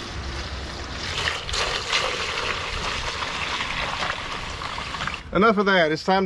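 Liquid pours and splashes into a funnel.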